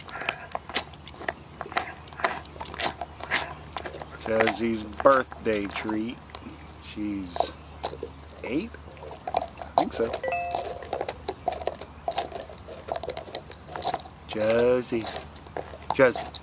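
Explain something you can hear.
A dog gnaws and crunches on a hard bone close by.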